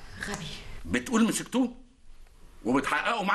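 An elderly man talks on a telephone.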